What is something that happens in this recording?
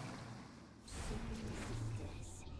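A splattering impact sound bursts out.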